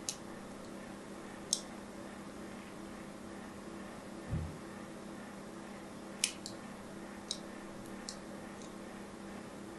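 A fingernail scrapes and taps against a block of soap, making sharp little clicks.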